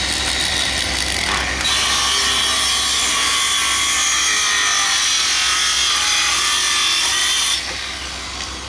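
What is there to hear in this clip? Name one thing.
An electric device hums steadily.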